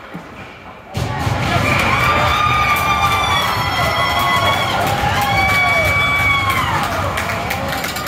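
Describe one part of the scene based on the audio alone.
A crowd cheers and shouts loudly in an echoing arena.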